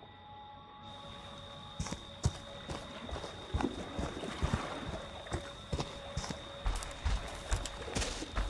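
Footsteps crunch over leaves and brush outdoors.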